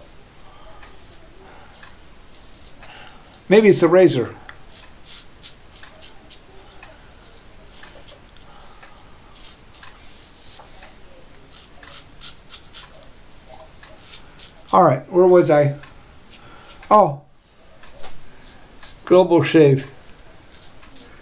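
A razor scrapes over stubble.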